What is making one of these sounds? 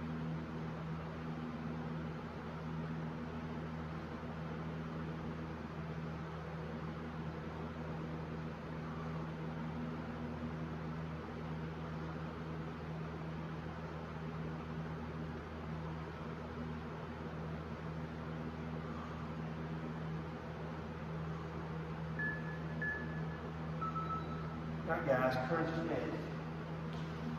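An electric fan hums steadily nearby.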